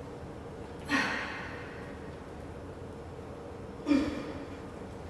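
A barbell clanks as it is lifted and set down.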